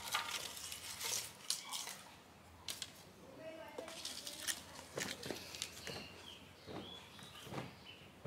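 Dry cane strips rustle and click as they are handled.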